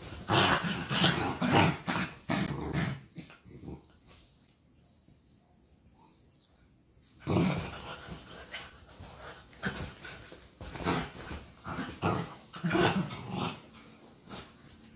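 Dogs scuffle and thump on a bed.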